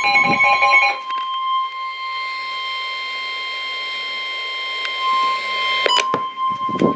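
A small radio gives out a steady, softer high tone.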